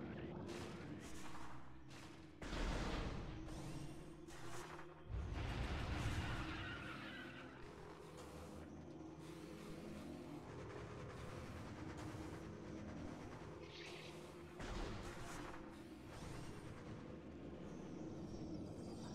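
Game music plays steadily throughout.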